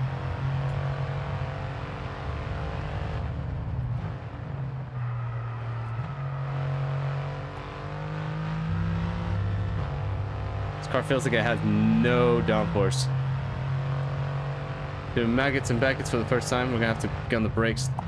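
A racing car engine roars and shifts pitch as it speeds up and slows down.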